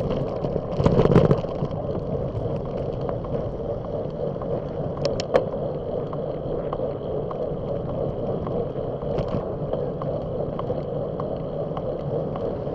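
A bicycle rattles and clicks over the road surface.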